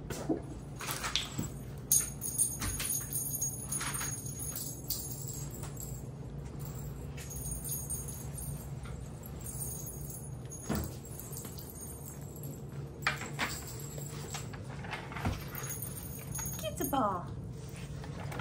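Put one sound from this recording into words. Puppy paws patter on a hard floor.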